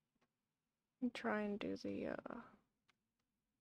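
A young woman speaks briefly and casually into a close microphone.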